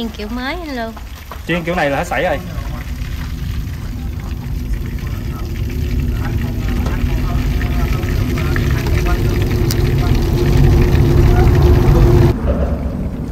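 Hot oil sizzles and bubbles steadily.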